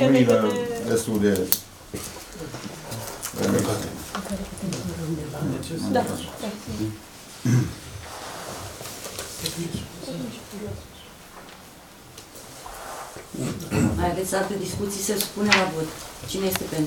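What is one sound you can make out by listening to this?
A middle-aged man speaks calmly and at length.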